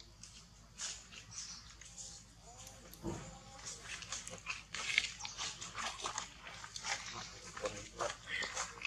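Dry leaves rustle under a small monkey's feet.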